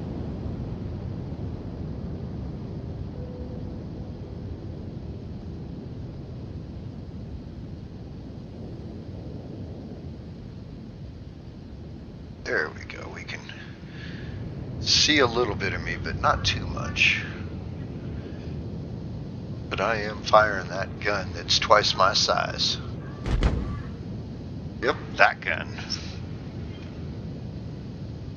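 A spaceship engine hums low and steadily.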